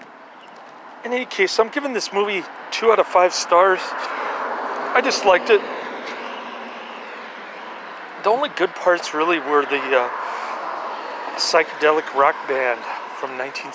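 A middle-aged man talks with animation, close to the microphone.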